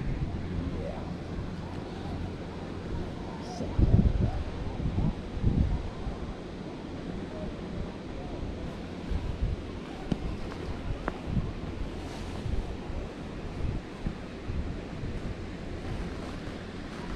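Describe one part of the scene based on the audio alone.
Wind buffets a microphone outdoors in gusts.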